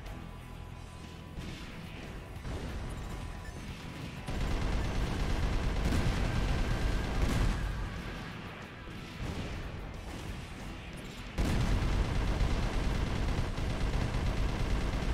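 Rocket thrusters roar steadily.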